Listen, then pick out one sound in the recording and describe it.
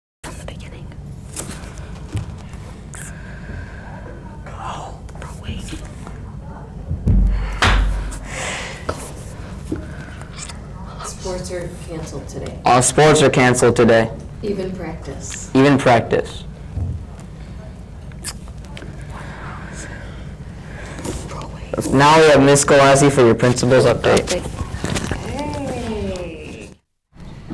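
A teenage boy speaks calmly into a microphone.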